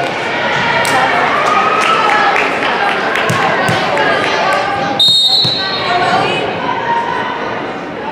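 Teenage girls call out to each other in a large echoing gym.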